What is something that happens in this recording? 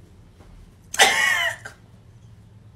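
A young woman sings a high note.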